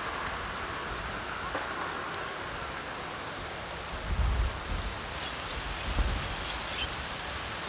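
City traffic hums in the distance.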